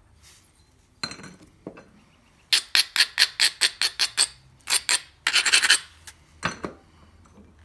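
A stone scrapes against metal in quick, rasping strokes.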